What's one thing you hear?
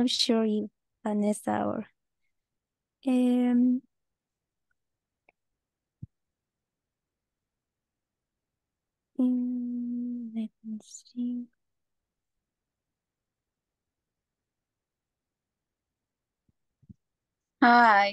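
A young woman speaks calmly over an online call, pausing often.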